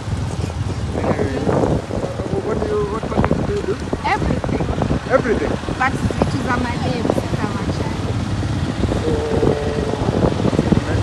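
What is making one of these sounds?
Motorcycle engines rumble nearby on a busy street.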